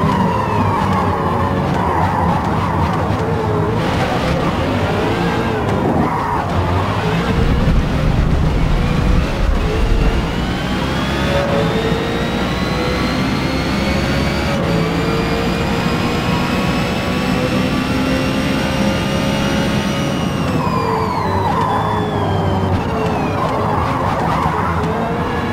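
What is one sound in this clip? A race car engine roars, rising steadily in pitch as the car speeds up, then dropping as it slows.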